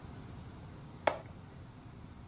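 A single sharp click sounds.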